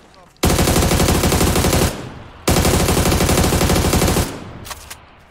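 An automatic rifle fires in long, rapid bursts close by.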